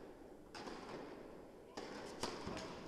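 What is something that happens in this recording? A tennis ball is struck hard with a racket, echoing in a large hall.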